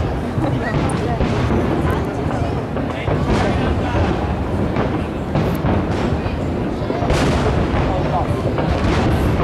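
A large outdoor crowd chatters and murmurs loudly.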